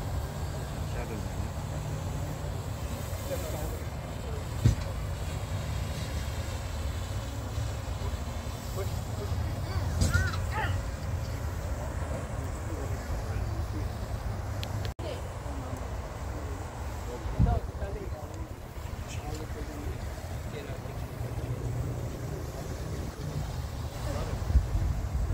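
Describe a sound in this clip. A crowd of men and women murmurs quietly at a distance.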